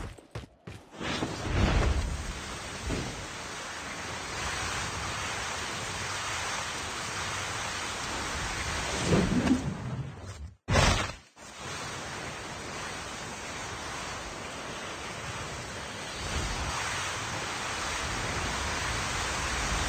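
A snowboard hisses steadily as it slides over snow.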